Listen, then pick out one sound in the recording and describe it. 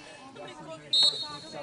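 A referee blows a short whistle.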